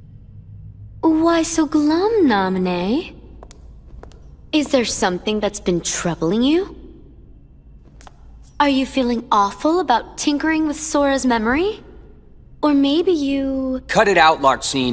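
A young woman speaks in a teasing, mocking voice.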